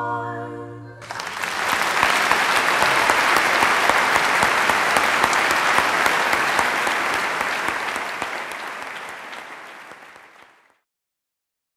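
A large audience claps and applauds in a big hall, then the clapping fades.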